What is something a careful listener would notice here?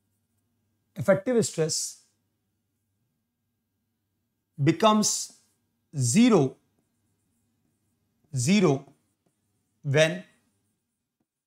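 A young man speaks in short, calm phrases close to a microphone.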